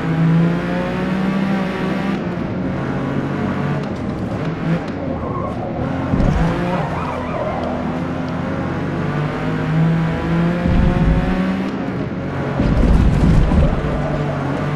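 A racing car engine roars steadily, rising and falling in pitch as the car speeds up and slows down.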